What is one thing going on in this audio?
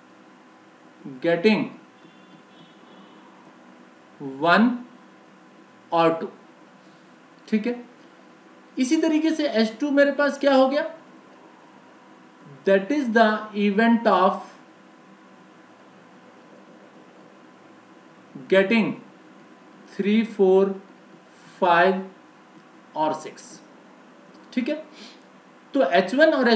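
A man explains calmly into a close microphone, in short bursts with pauses.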